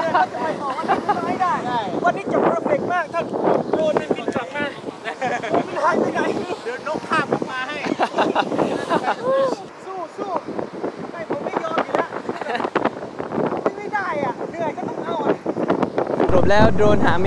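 Several young men talk and laugh excitedly close by.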